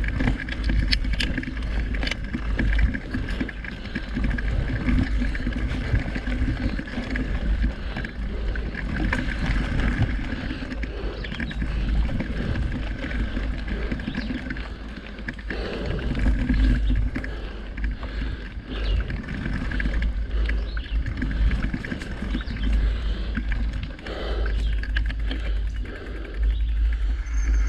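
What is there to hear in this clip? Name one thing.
Wind rumbles against a microphone while riding.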